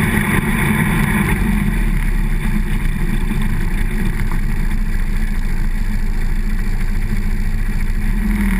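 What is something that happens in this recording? A quad bike engine drones while cruising.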